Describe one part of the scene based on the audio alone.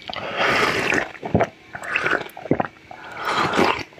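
A man slurps jelly close to the microphone.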